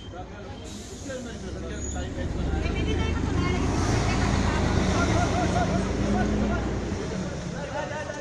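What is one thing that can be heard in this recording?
A crowd of men and women talk and shout over each other close by, outdoors.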